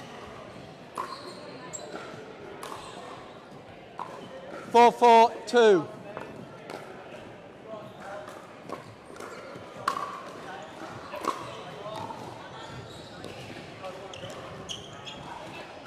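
Paddles pop against a plastic ball, echoing in a large hall.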